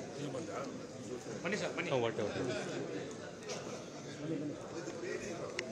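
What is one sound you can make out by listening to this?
Middle-aged men chat with each other close by.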